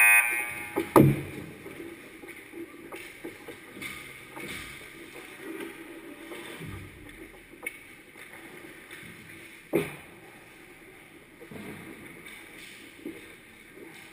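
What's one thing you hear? Hockey sticks and pucks clack and thud against the ice and boards.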